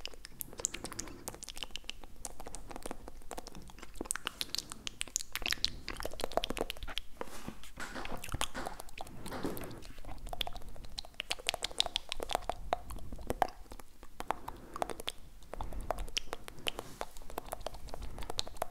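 Mouth clicks and lip smacks sound right at a microphone.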